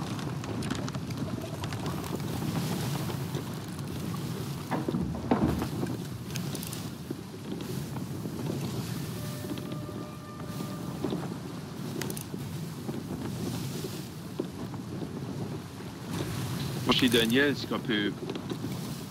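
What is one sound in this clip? Waves roll and crash steadily against a wooden ship.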